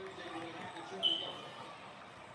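Sneakers squeak on a wooden court through a television speaker.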